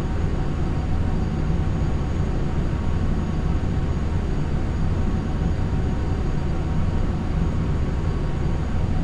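Jet engines hum with a steady low roar.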